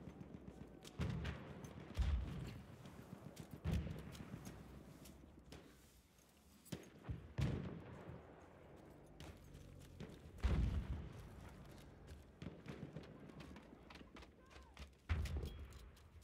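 Rifle shots boom loudly, several times.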